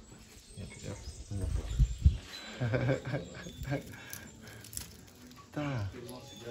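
A marmoset chews on food.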